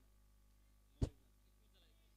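A bat hits a tennis ball with a sharp crack.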